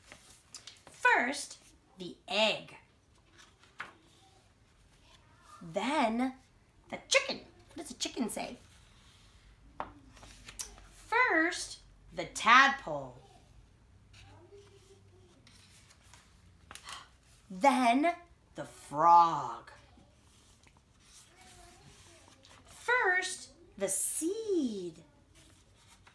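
A woman reads aloud expressively, close by, in short phrases with pauses.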